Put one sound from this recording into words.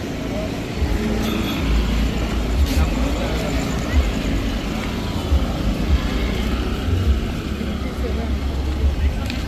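Motor scooters ride past nearby with humming engines.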